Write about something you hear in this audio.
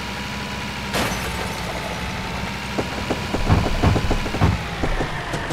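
Cars crash and crunch into each other.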